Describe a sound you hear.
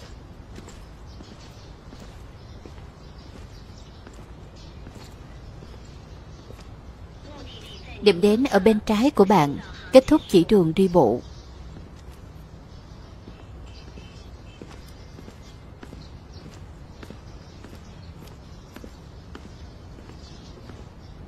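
Footsteps walk softly on stone.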